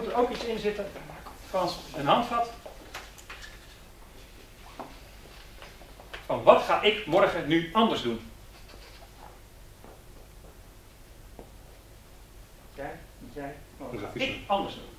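A man speaks in bursts, with pauses between, in a room.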